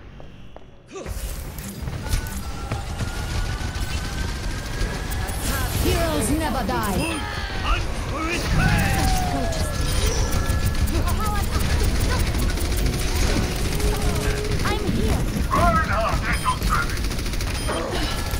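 An energy gun fires rapid buzzing shots.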